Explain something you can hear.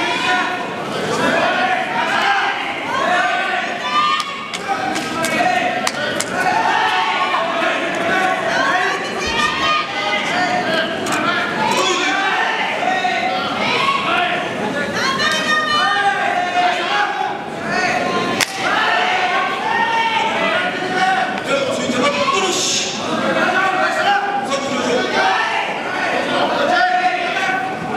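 A crowd of people chatters and murmurs throughout a large echoing hall.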